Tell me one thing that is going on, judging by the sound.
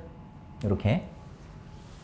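A young man speaks a few words close by.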